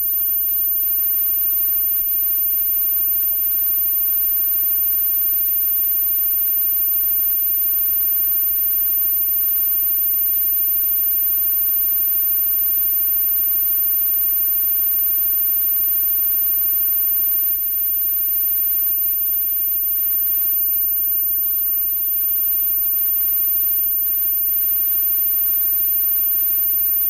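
A drum kit pounds along with the band.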